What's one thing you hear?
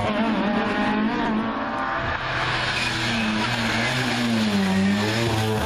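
A rally car engine roars loudly, revving up and down as it speeds past.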